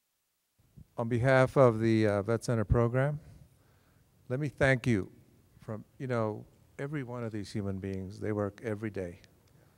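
A man speaks with animation into a handheld microphone.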